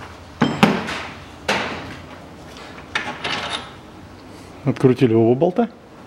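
A metal part under a car clunks as a hand moves it.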